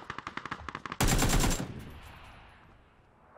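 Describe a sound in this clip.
A loud blast booms and fades.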